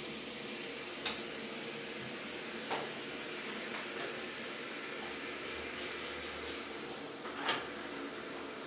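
A spray bottle squirts liquid in short bursts.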